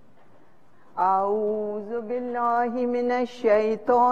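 An elderly woman chants in a sustained, wavering voice through a microphone.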